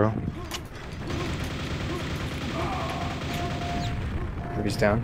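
A heavy gun fires in a rapid stream of shots.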